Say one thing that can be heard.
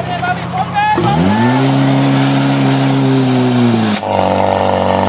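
A pump engine revs up and drops back.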